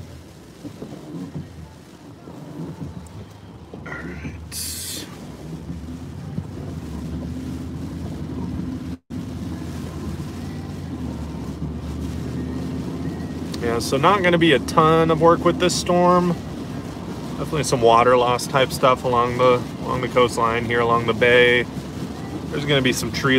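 A car engine hums and tyres roll steadily over a wet road.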